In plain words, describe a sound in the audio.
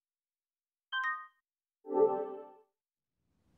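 A short electronic chime rings and then a lower tone follows.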